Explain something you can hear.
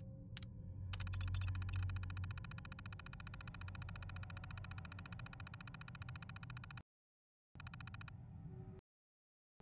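Text chatters rapidly onto a terminal with soft ticking.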